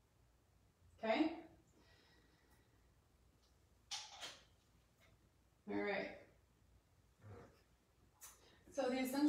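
A young woman speaks calmly and close by, in short bursts.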